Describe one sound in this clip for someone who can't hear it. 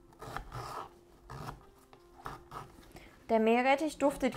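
A knife cuts through soft vegetables and taps on a wooden board.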